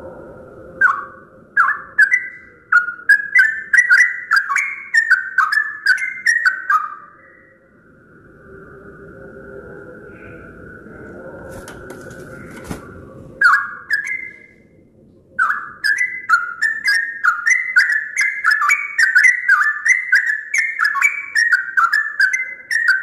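A yellow-vented bulbul sings bursts of bubbling, chattering phrases.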